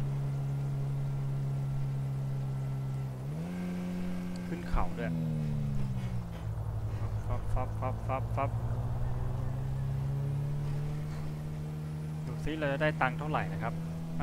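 A car engine hums steadily, rising in pitch as it speeds up and dropping as gears change.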